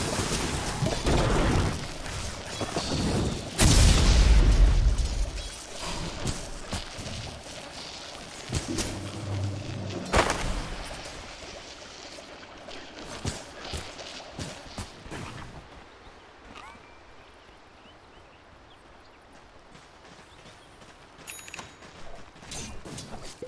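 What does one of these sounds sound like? Game weapons clash and thud in combat.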